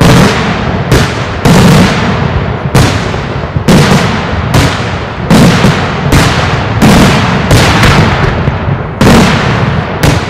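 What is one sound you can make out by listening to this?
Firecrackers burst loudly overhead, one after another in a rapid series.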